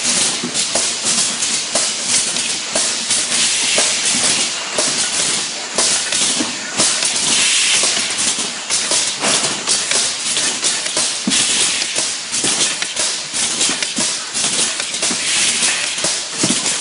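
A packing machine clatters and hums steadily.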